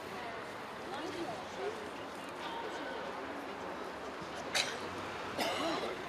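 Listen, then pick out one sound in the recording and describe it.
Several men talk outdoors nearby.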